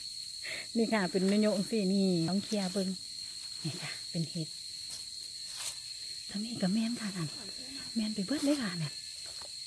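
Dry leaves rustle as a stick pokes through them.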